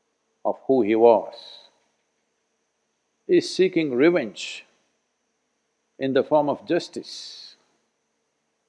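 An elderly man speaks calmly and slowly in short phrases, close to a microphone.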